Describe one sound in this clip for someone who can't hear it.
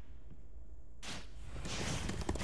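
A loud whoosh sweeps past.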